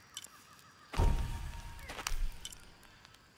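A deep thud and a short buzzing tone sound as a choice is refused.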